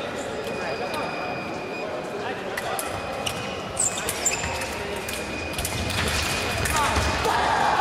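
Fencers' shoes squeak and stamp on the floor in a large echoing hall.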